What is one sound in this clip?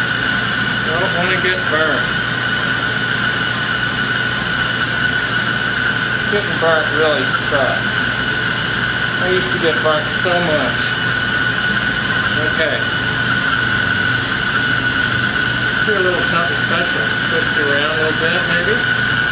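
A man talks calmly nearby, in short bursts.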